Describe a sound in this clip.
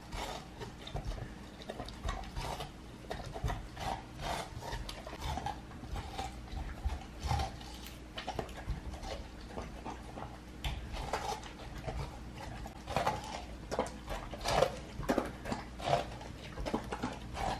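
A dog chomps and slurps on juicy watermelon up close.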